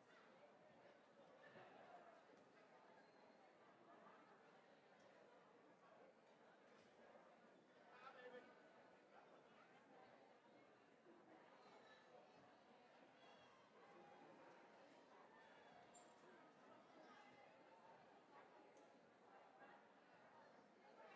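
A crowd of women chatter and talk at once in a large echoing hall.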